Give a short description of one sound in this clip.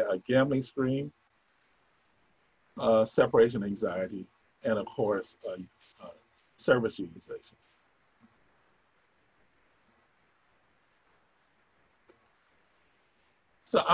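A man speaks calmly through a microphone on an online call, pausing between phrases.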